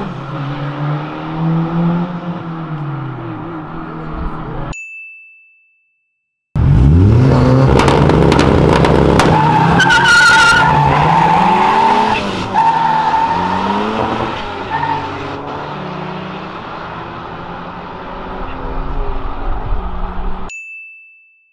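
Car engines roar as cars race away down a track.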